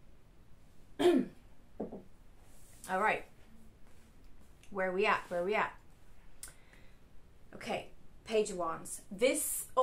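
A young woman speaks softly and calmly close by.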